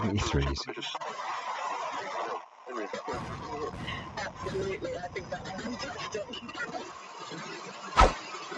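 A radio receiver hisses with static.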